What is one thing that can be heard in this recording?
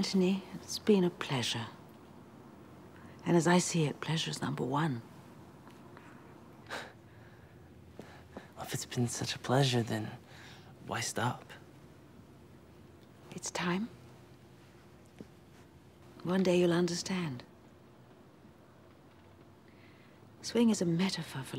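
A woman speaks calmly and warmly, close by.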